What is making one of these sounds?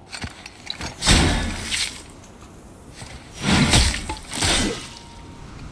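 An axe strikes something hard with heavy thuds.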